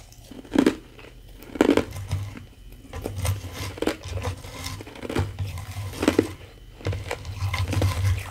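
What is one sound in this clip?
Fingernails tap and scratch on ice close to a microphone.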